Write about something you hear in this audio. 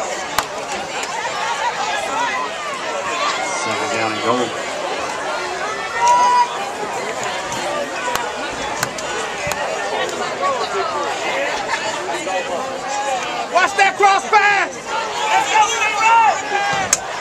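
A crowd of spectators talks and cheers outdoors.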